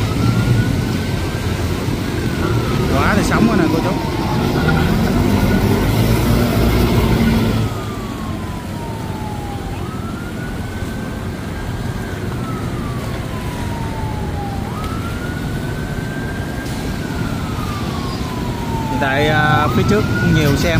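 Motorbike engines putter past.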